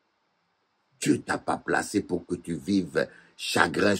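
A middle-aged man speaks close to a microphone, calmly and with expression.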